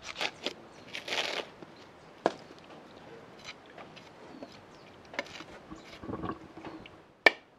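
Fibrous coconut husk tears as it is pried apart.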